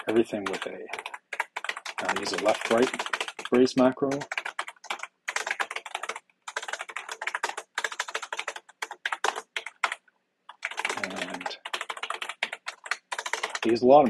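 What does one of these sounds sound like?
Keyboard keys clatter in quick bursts of typing.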